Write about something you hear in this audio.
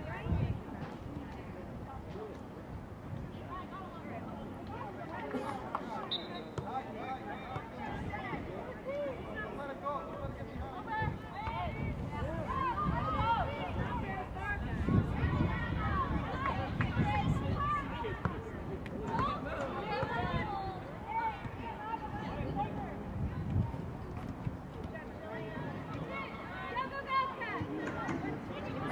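Spectators cheer and call out from the sideline.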